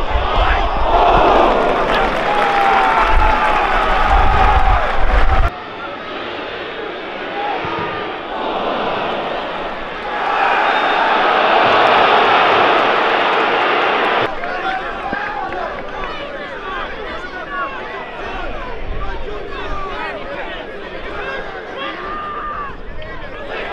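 A large crowd roars and cheers in an open stadium.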